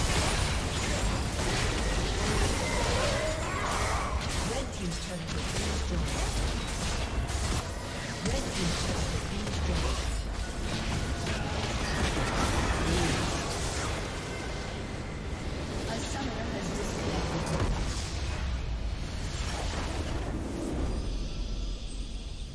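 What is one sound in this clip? Magic blasts and weapon clashes crackle and boom in a fast video game battle.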